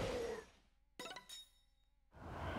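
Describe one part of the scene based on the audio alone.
Coins jingle as they scatter.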